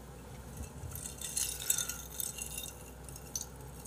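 A young man slurps a drink through a straw.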